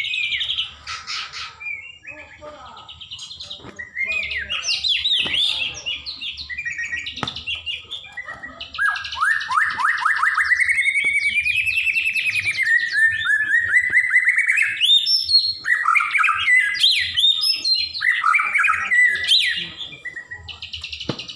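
A songbird sings loud, varied, whistling phrases close by.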